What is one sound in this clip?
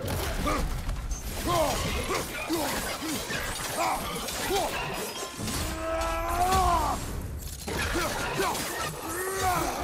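A creature growls and snarls.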